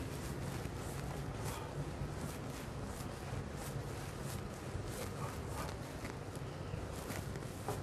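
An eraser rubs across a chalkboard.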